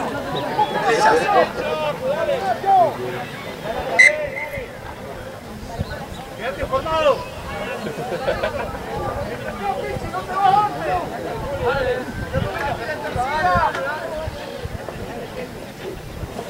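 Young men shout and call to each other outdoors, close by.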